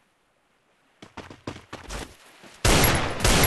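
Footsteps of a running video game character patter on the ground.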